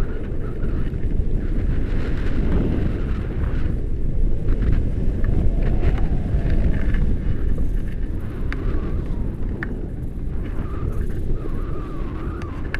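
Wind buffets a microphone.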